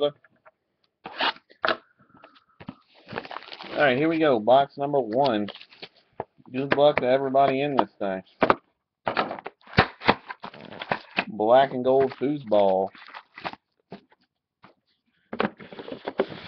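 Cardboard boxes knock and slide against each other.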